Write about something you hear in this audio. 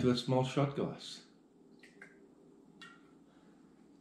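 Liquid pours from a bottle into a small glass.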